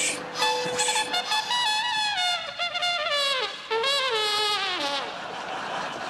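A trumpet plays a bright fanfare.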